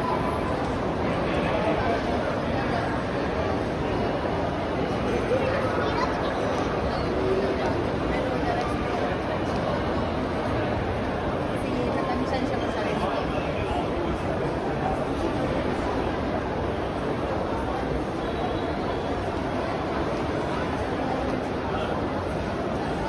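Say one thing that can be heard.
Footsteps tap on a hard floor nearby.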